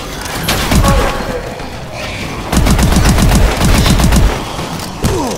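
Rapid gunfire bursts loudly in quick succession.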